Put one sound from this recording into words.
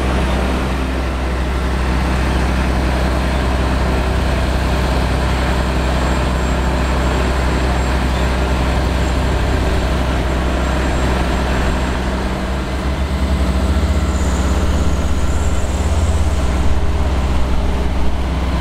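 A heavy tractor engine rumbles nearby.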